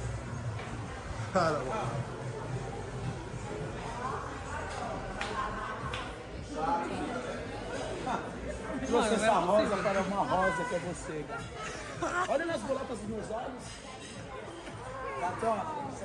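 A crowd of men and women chatters in the background.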